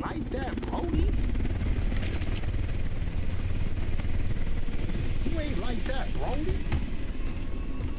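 An aircraft engine drones with a low, steady rumble.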